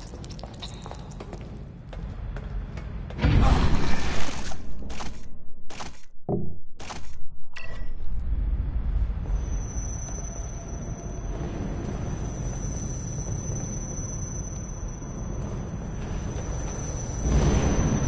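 Footsteps walk slowly across a hard, gritty floor.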